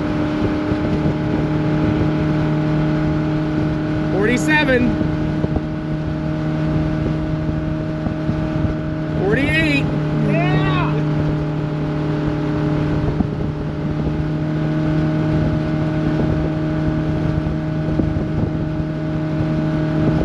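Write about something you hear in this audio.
Water splashes and hisses against a boat's hull.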